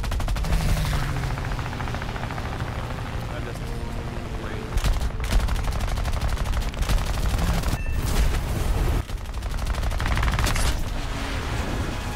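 Machine guns fire in rapid bursts.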